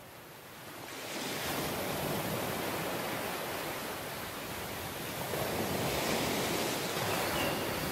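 Waves wash onto a beach in a steady rush.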